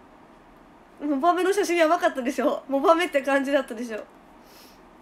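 A young woman speaks brightly and cheerfully close to a microphone.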